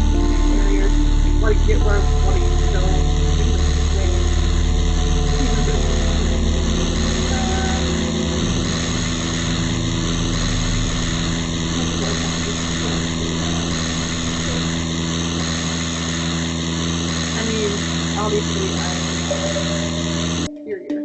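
A small vehicle engine drones steadily.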